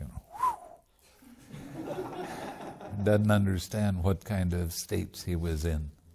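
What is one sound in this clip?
An elderly man laughs softly.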